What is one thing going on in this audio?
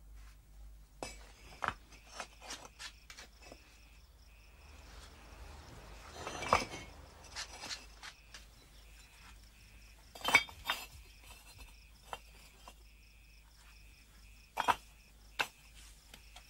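Bricks clack and scrape as they are set in place.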